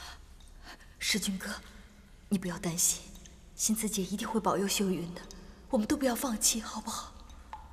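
A young woman speaks gently and reassuringly close by.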